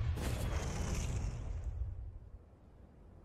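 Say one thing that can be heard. A loud explosion booms and rumbles, then fades.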